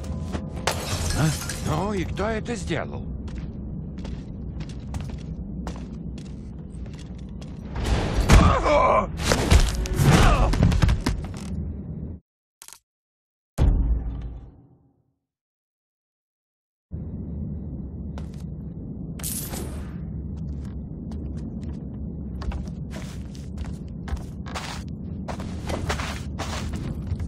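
Footsteps thud softly on wooden boards.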